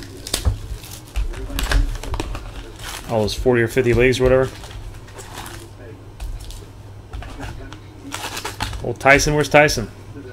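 Cards and plastic wrappers rustle and click as hands handle them.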